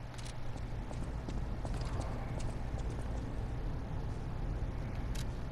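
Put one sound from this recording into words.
Footsteps tap on a stone floor in a large echoing hall.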